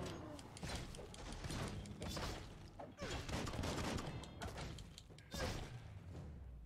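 Blades swish and clash in a fast fight.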